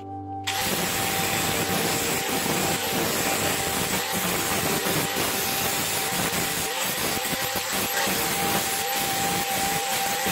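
An angle grinder whines loudly as it cuts through a metal bar.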